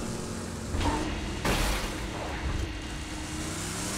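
Heavy metal doors slide open with a rumble.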